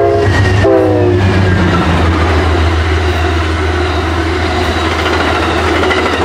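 Train cars roll and clatter past close by.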